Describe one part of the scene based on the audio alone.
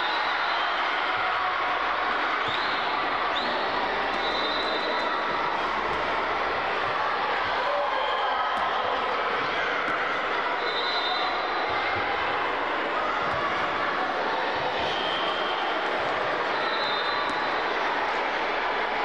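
A large crowd of children chatters and shouts in a large echoing hall.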